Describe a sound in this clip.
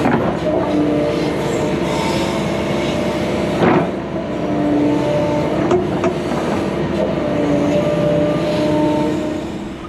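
Hydraulics whine as an excavator arm moves.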